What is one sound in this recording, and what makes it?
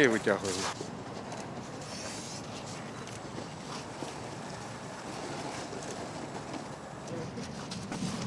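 A fire hose scrapes and slides over ice.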